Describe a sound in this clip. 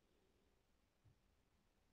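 A metal whisk taps against a plastic bowl.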